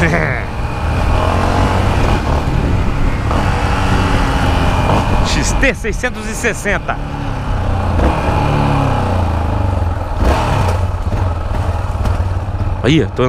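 A motorcycle engine rumbles and revs up and down close by.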